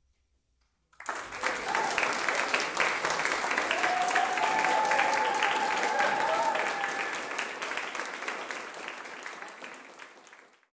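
An audience applauds loudly in a room with some echo.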